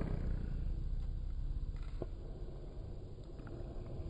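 A small dog yawns with a soft whine.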